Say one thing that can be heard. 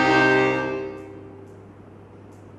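An accordion plays a held chord that fades away.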